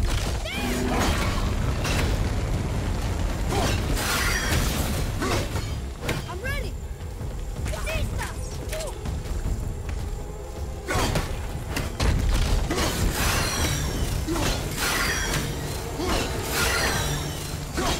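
Magical energy crackles and bursts.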